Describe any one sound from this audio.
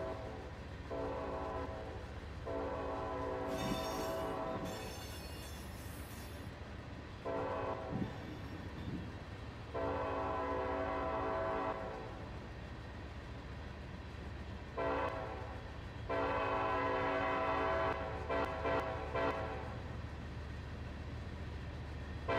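Freight cars rumble and clatter steadily along the rails close by.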